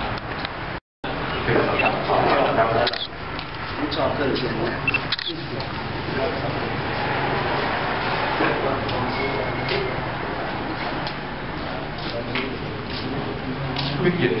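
Several men murmur quietly nearby.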